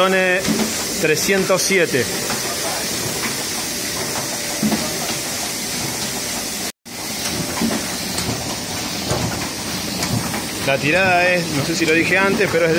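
A printing press runs with a steady mechanical clatter.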